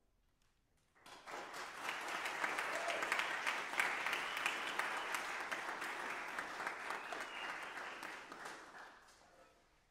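An audience applauds warmly.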